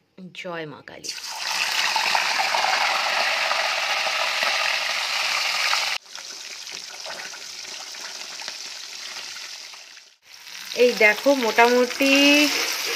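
Hot oil sizzles loudly as fish fries in a pan.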